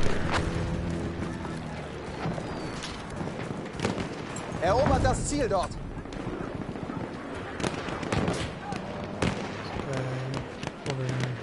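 Gunshots crack in the distance.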